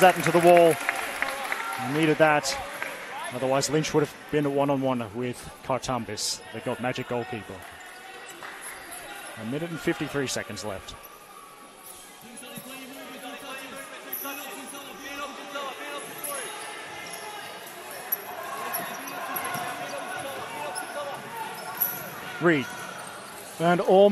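A crowd of spectators murmurs in the background.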